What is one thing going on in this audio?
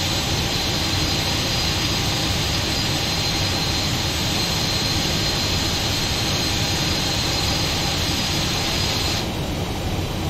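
A jet airliner's engines whine and roar steadily close by.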